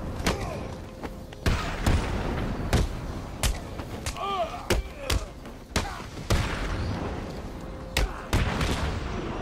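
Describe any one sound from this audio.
Heavy punches land with sharp thuds.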